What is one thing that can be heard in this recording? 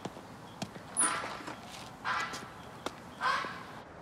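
A door swings shut with a knock.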